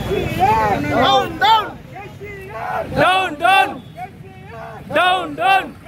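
A man leads the chant, shouting slogans in bursts.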